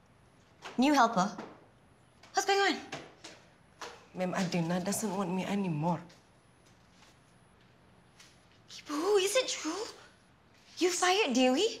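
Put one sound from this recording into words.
A young woman speaks sharply and in short bursts, close by.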